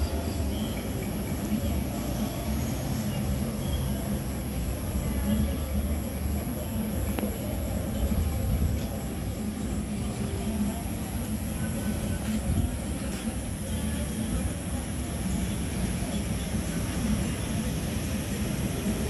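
Traffic hums steadily in the distance.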